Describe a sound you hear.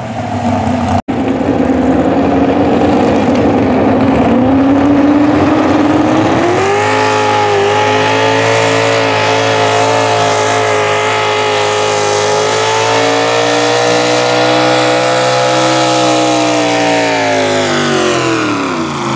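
A pickup truck engine roars and revs hard.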